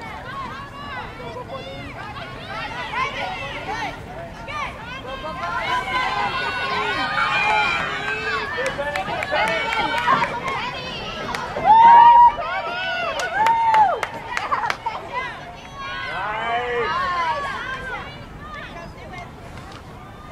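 Young women shout and call out to each other across an open field outdoors.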